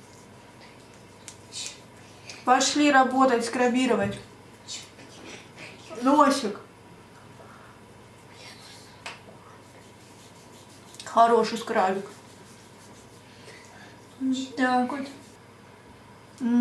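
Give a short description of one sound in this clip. Hands rub foam softly over a face.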